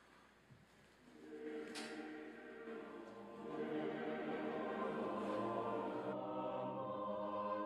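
A choir sings together.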